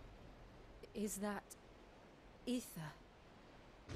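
A young woman asks a hushed question, close by.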